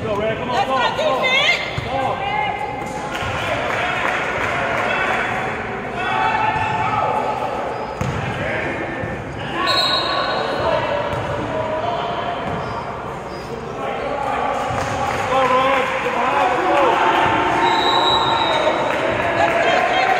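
A crowd of spectators talks and cheers nearby.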